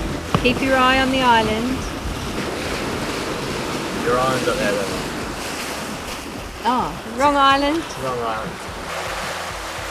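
A middle-aged woman talks and laughs cheerfully close by.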